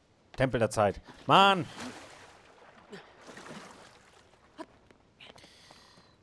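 Water splashes softly as a swimmer paddles.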